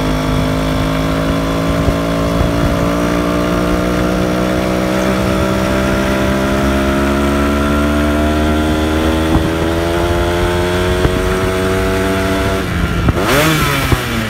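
A motorcycle engine hums steadily, its pitch slowly rising as it speeds up.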